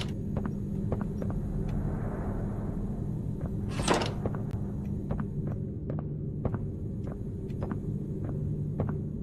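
Footsteps walk at a steady pace on a hard floor.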